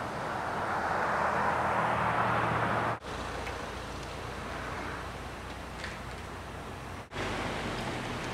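Wheelchair wheels roll over asphalt.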